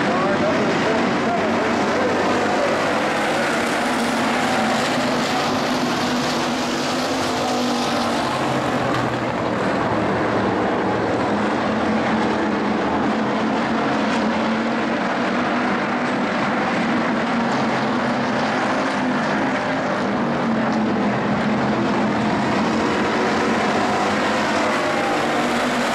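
Several race car engines roar loudly and steadily.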